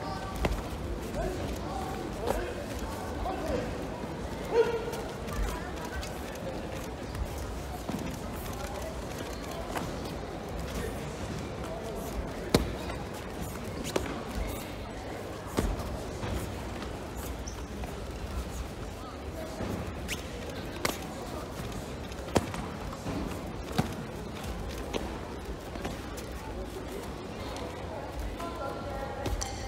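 Kicks and punches thud against padded bodies in a large echoing hall.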